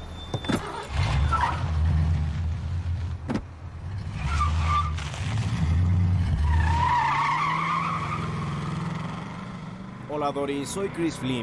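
Vehicles rush past loudly on a road.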